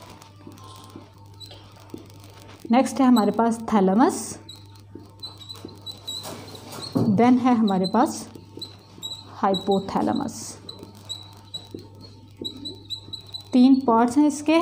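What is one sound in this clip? A marker squeaks as it writes on a whiteboard.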